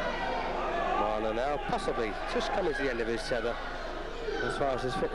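Men in the crowd shout encouragement excitedly.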